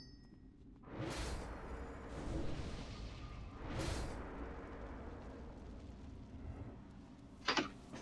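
Magic spells whoosh and shimmer.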